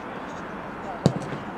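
A foot kicks a football with a sharp thud.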